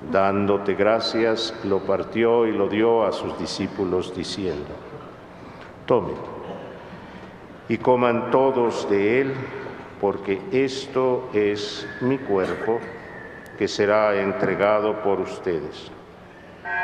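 A middle-aged man chants and speaks into a microphone in a large echoing hall.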